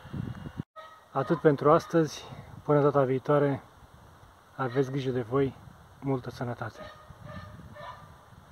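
A middle-aged man talks calmly and close up, outdoors.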